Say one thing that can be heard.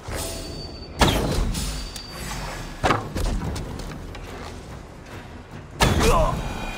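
A sword clashes with a sharp metallic ring.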